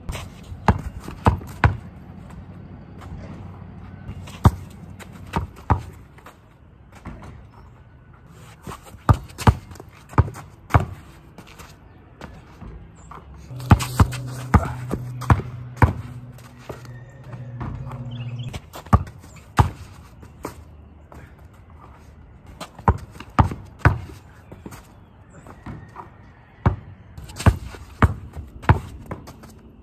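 A basketball bounces on hard-packed dirt.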